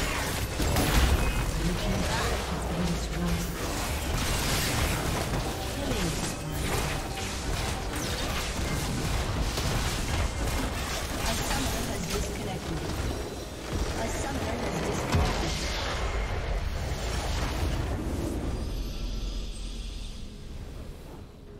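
Magic blasts, crackles and explosions clash rapidly in a fantasy battle.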